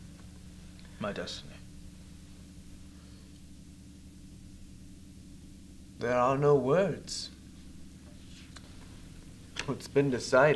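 A man speaks slowly and softly nearby.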